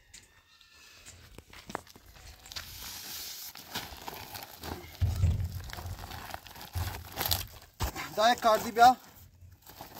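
Sand pours with a soft hiss into a plastic container.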